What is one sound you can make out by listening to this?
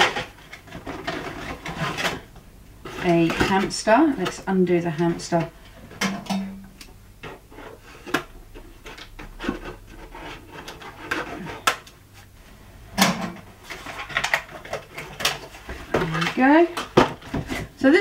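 Plastic packaging crinkles in a woman's hands.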